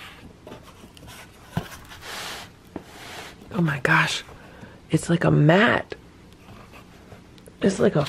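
Fingers rub and rustle against a soft fabric item inside a cardboard box.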